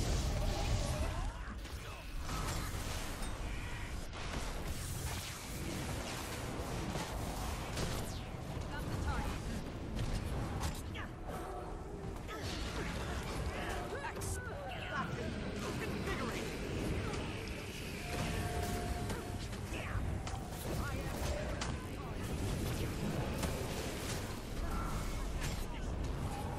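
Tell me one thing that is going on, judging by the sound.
Magic spell effects crackle and burst during a video game battle.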